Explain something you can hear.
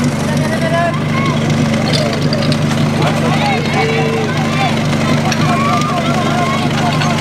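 A crowd of people shout and cheer outdoors.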